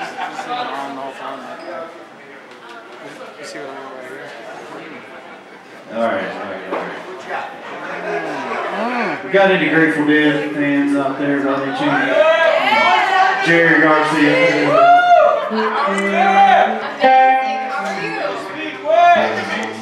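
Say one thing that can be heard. An electric guitar plays through an amplifier, echoing in a hall.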